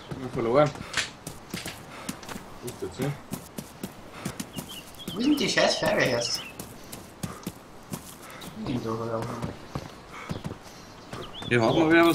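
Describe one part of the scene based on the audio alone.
Footsteps run quickly over gravel and hard ground.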